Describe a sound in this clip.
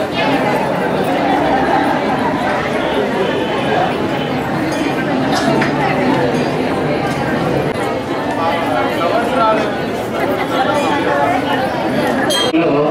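A crowd of women and children chatter all around.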